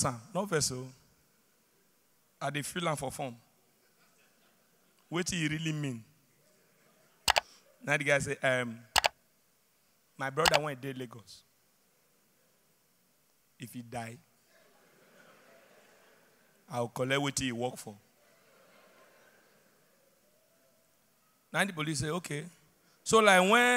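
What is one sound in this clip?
A young man talks with animation through a microphone in a large hall.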